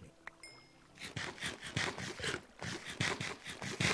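Quick, repeated crunching bites of food.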